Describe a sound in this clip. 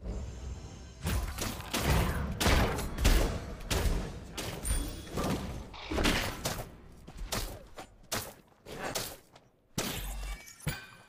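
Weapons strike and magic blasts burst in a fast fight.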